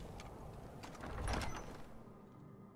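A heavy stone door grinds open.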